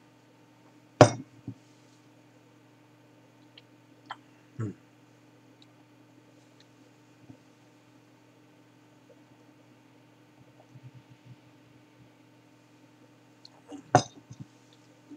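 A glass is set down on a wooden table with a knock.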